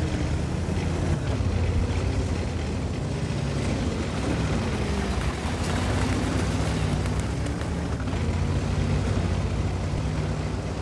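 A tank engine rumbles steadily as the tank drives over rough ground.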